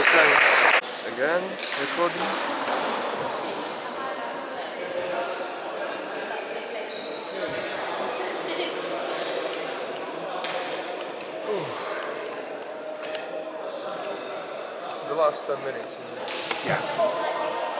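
Players talk with one another in a huddle.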